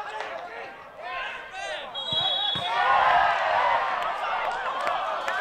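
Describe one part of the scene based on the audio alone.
A small crowd cheers and shouts excitedly.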